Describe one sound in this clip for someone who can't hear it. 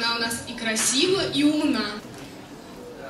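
A young woman sings into a microphone in a large hall.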